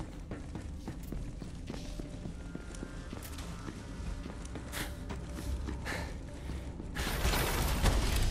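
Footsteps thud quickly over rough ground.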